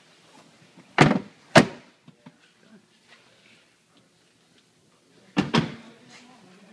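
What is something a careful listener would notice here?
Rear seat backs clunk loudly as they fold down.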